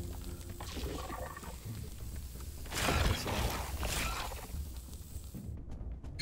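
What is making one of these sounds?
Footsteps crunch on loose gravel.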